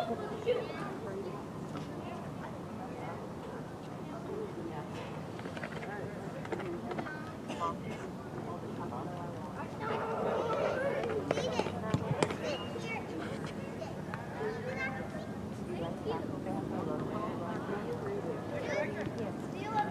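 Teenage boys shout to each other outdoors on an open field.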